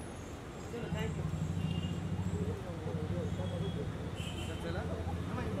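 A car engine idles close by.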